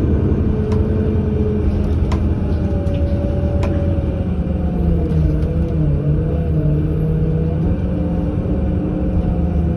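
A bus engine hums and whines steadily from inside the bus.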